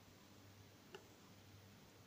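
A wooden stick taps against a glass jar.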